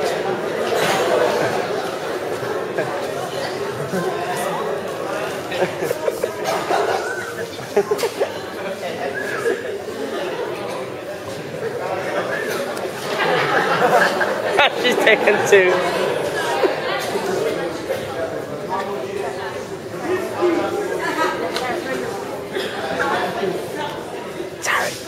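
Teenagers laugh loudly nearby.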